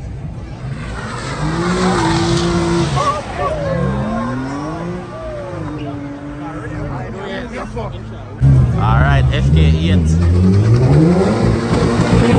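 Car tyres screech on the road.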